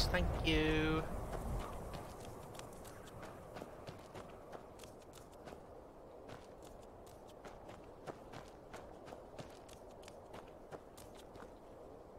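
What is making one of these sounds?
Footsteps crunch softly on dry ground.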